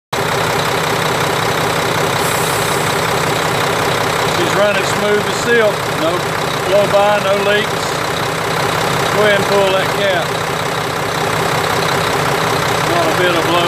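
A diesel engine idles with a steady, loud rumble close by.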